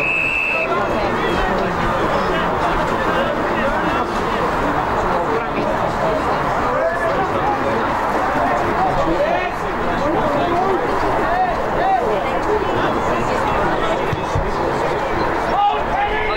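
A crowd of spectators chatters and calls out loudly outdoors.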